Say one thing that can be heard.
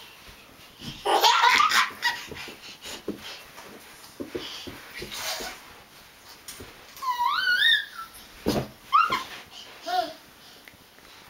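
A baby boy babbles and giggles.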